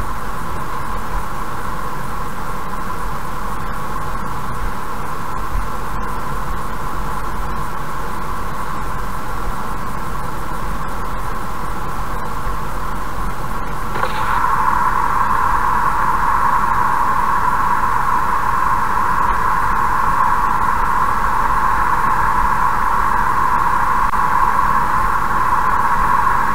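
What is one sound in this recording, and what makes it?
A car drives steadily along a road, its engine humming and tyres rumbling.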